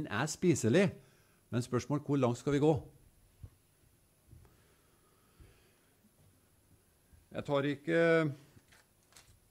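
An elderly man speaks calmly into a microphone, in bursts with long pauses, in a room with slight echo.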